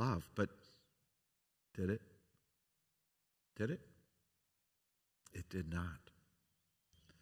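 An elderly man speaks calmly through a microphone in short phrases, with pauses between them.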